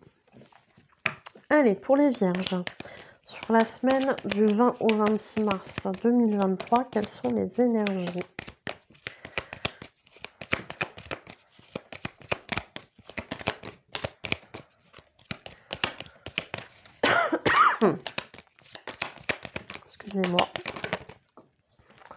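Playing cards are shuffled with quick, crisp riffles.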